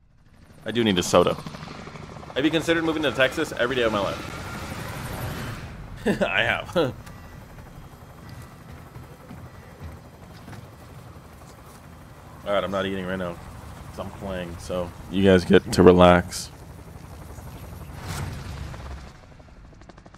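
Helicopter rotors thrum steadily.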